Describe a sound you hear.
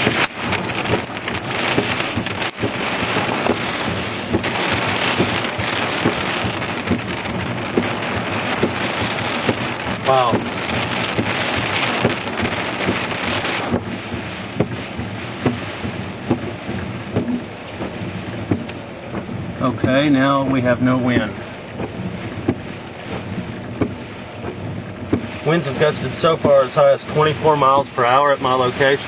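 Rain patters on a car's windshield.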